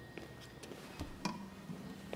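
A metal paint can is set down on a hard floor with a clunk.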